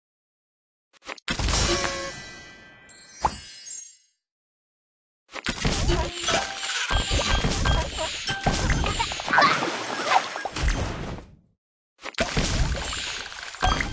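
Bright game chimes and popping effects sound as pieces match and burst.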